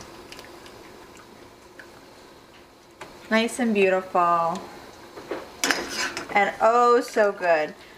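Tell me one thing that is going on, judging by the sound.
Water drips and splashes in a pan as food is lifted out.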